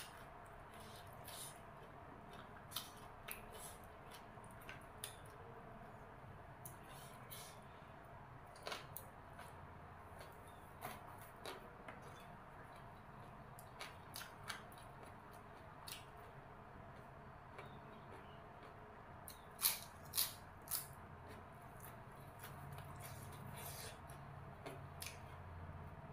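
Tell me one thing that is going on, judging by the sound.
A woman chews and crunches food noisily close by.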